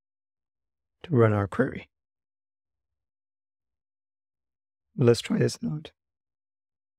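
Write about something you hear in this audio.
A man speaks calmly and close to a microphone, in two short bursts.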